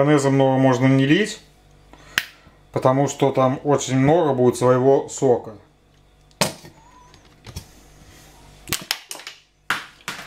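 A squeeze bottle squirts sauce with soft sputters.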